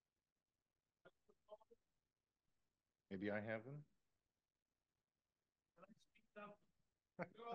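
An elderly man speaks into a microphone in short, halting bursts.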